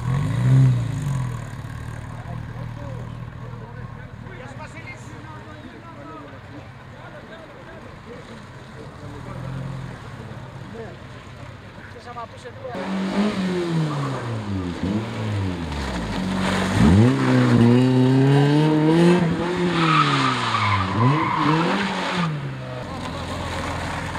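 A small car engine revs hard, rising and falling as the car swerves through tight turns.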